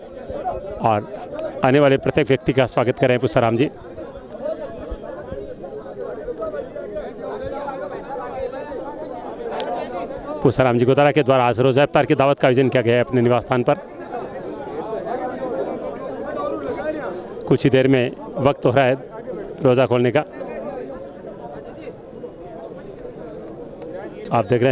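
A crowd of men chatters all around outdoors.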